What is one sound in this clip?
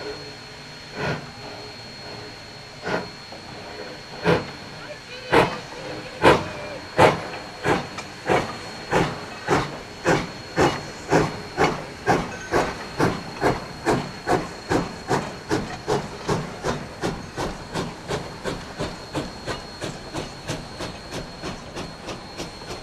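A steam locomotive chuffs in sharp puffs that start slowly and grow steadily faster.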